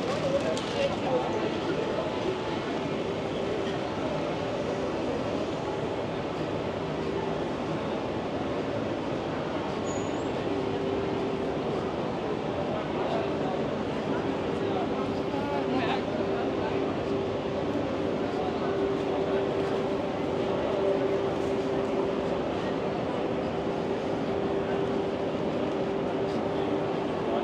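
A crowd of people chatters in a busy street outdoors.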